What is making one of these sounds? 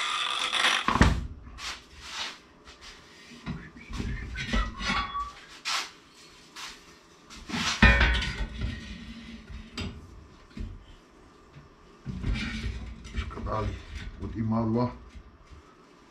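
A metal bar clanks and scrapes against a vise.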